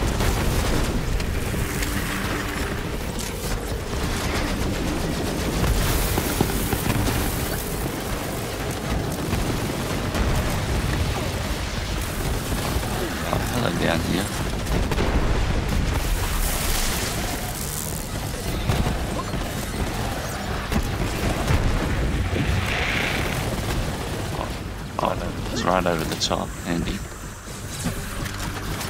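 Rapid gunfire and blasts ring out in a loud, busy fight.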